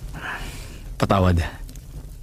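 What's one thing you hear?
A man speaks briefly in a low voice.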